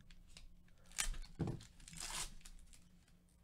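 A foil pack tears open.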